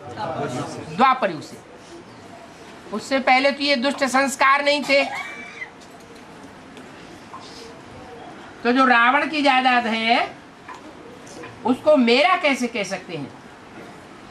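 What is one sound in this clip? An elderly man speaks close by, with pauses between phrases.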